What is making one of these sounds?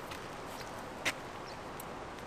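A plastic part clicks sharply into place.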